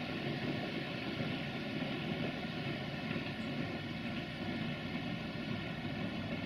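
A train rumbles steadily along the tracks in the distance.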